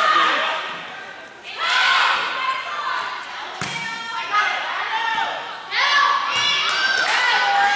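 Spectators cheer and shout across a large echoing gym.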